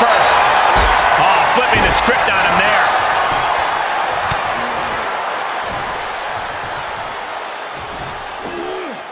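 A large crowd cheers and roars loudly, slowly fading.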